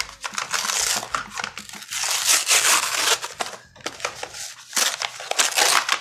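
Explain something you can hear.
A plastic mailer bag rips open.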